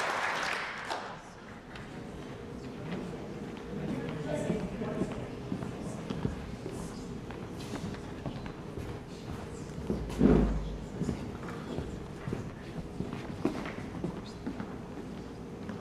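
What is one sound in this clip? Footsteps thud on a wooden stage.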